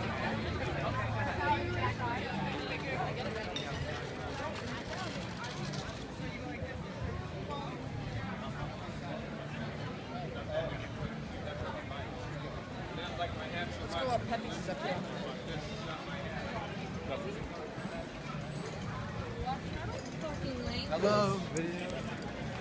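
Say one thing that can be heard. A crowd of men and women chatters on a busy street outdoors.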